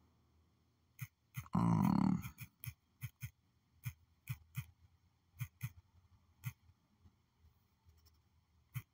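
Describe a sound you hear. Soft keyboard clicks tap quickly and unevenly.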